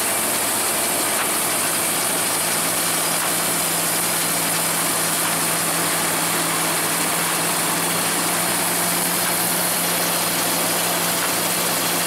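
A combine harvester engine drones steadily up close.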